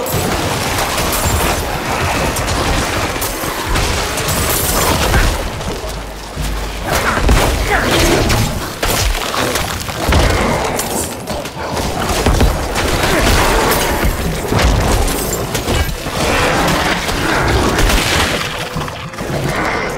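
Weapons clash and slash in a fast, constant fight.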